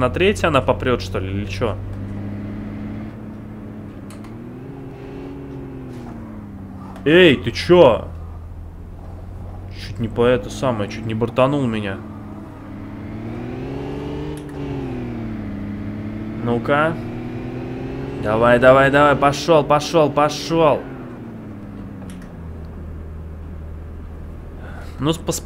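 A car engine hums and revs up and down.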